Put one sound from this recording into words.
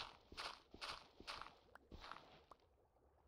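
Stone blocks crack and crumble as they are broken.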